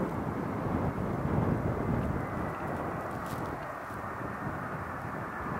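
A jet airliner's engines roar steadily as it taxis nearby.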